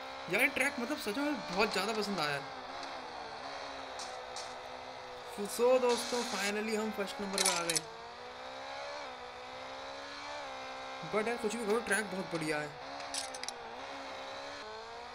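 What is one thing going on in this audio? A motorcycle engine drones steadily, its pitch rising and falling as it speeds up and slows down.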